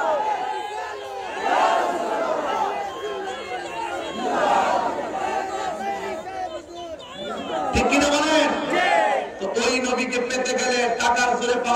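A man preaches loudly and passionately into a microphone, heard through loudspeakers.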